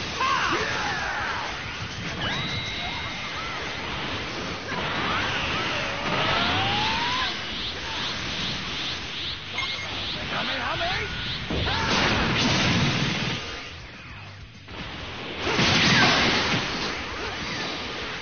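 Energy blasts whoosh and crackle in a fighting game.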